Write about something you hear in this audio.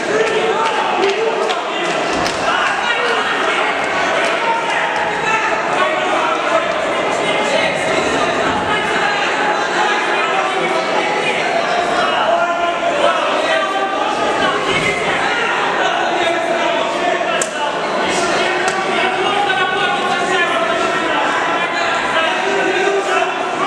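A crowd shouts and cheers loudly.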